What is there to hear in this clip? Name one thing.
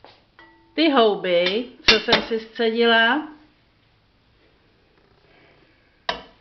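A metal strainer knocks against a steel saucepan.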